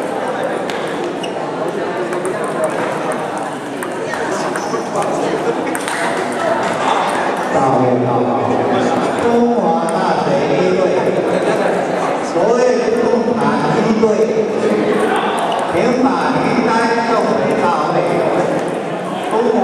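Table tennis balls click on paddles and tables.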